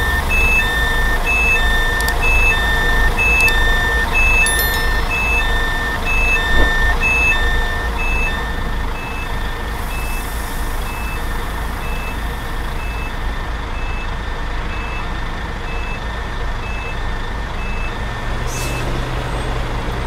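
A reversing alarm beeps at a steady pace, then stops.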